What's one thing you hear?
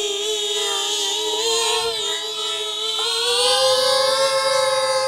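A small drone's propellers whine steadily nearby, rising slightly in pitch as it lifts off.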